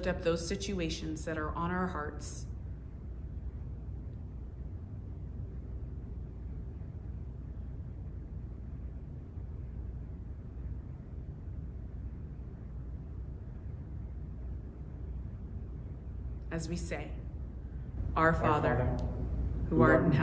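A woman speaks calmly and slowly into a nearby microphone.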